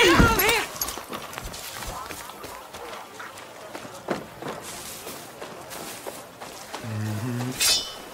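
Footsteps crunch on dirt and wooden boards.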